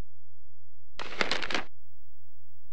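A book opens with a quick papery rustle.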